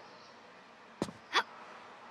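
A body lands with a heavy thud.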